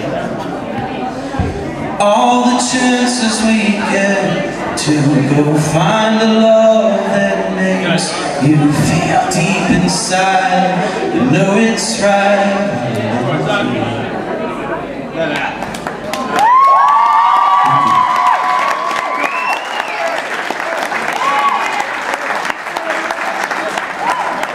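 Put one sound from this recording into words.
An acoustic guitar is strummed and picked.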